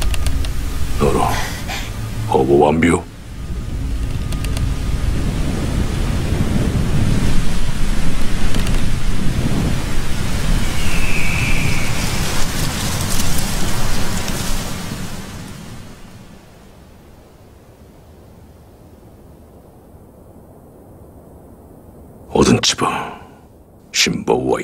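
A man speaks in a low, menacing voice close by.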